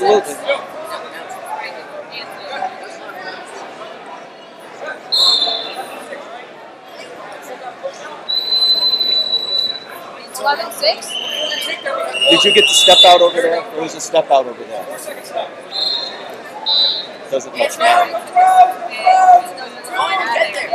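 A crowd murmurs in a large echoing hall.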